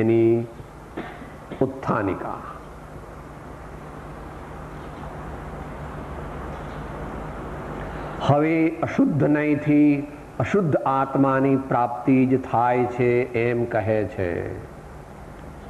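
An elderly man speaks calmly and slowly, close by.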